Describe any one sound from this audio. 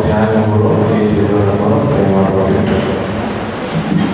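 A man speaks through a microphone, amplified in an echoing hall.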